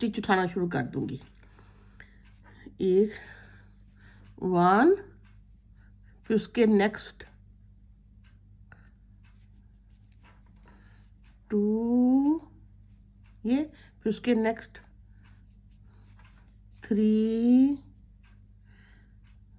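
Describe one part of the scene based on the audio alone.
A crochet hook softly rubs and pulls through yarn.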